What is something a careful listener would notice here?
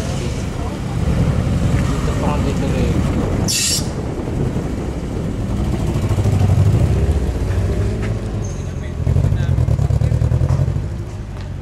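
A car engine revs loudly in bursts.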